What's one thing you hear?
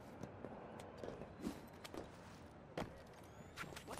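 A person jumps down from a truck bed and lands with a thud.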